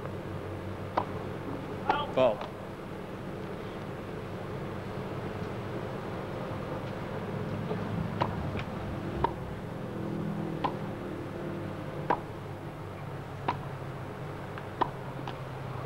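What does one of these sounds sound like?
Tennis rackets strike a ball back and forth with sharp pops.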